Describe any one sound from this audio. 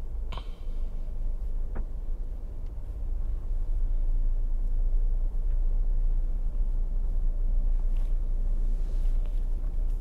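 A vehicle drives slowly along a road, its engine humming low.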